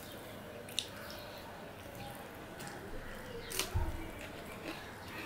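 A man chews and smacks his lips noisily up close.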